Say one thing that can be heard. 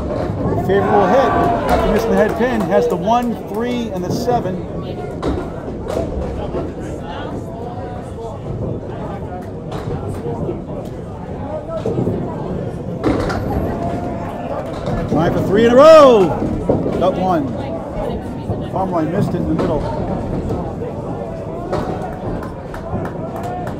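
Pins crash as a ball strikes them.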